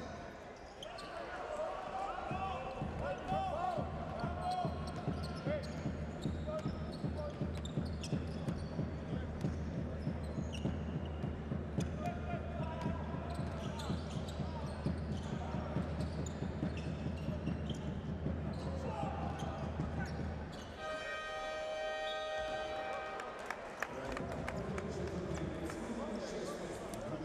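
A large crowd chants and cheers in an echoing arena.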